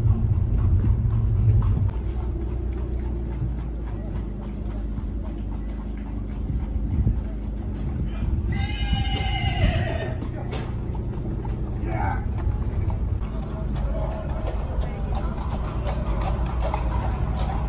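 Horse hooves clop on the road.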